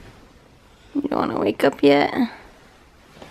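A baby girl giggles.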